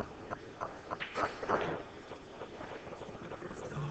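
Pool balls knock together and roll across the table.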